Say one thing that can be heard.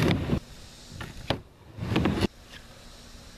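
Skateboard wheels roll and clatter loudly on a wooden ramp.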